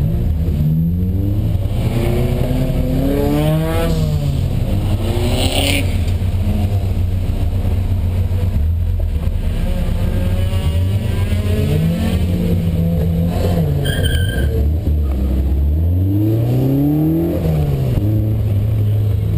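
A car engine revs hard up and down close by, shifting gears as it speeds up.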